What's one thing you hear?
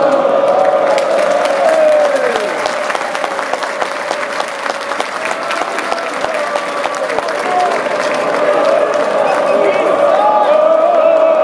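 Football players clap their hands in rhythm.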